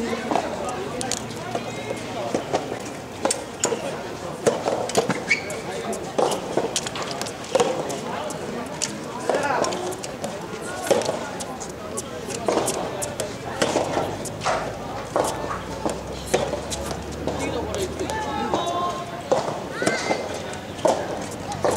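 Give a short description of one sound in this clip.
Tennis balls pop off rackets in a steady rally.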